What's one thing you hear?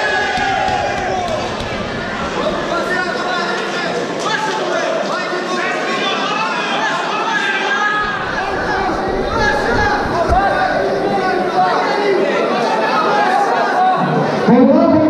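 A crowd of spectators shouts and chatters in a large echoing hall.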